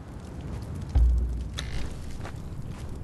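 A wooden door thuds open.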